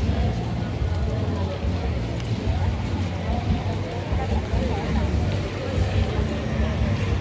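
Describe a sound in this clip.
A crowd of women chatters outdoors.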